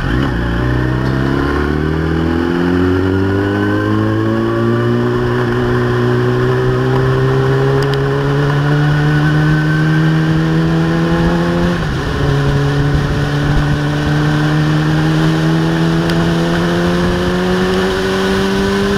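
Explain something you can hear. A motorcycle engine revs up through the gears, rising in pitch and briefly dropping at a gear change.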